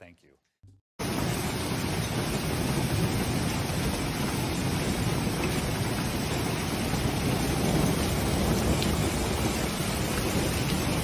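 Hail pours down and clatters steadily outdoors.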